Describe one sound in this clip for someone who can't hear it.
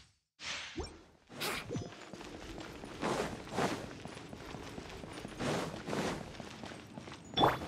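Footsteps patter quickly on stone as a character runs and climbs stairs.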